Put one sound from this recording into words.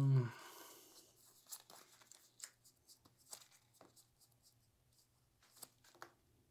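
Playing cards shuffle and riffle in hands.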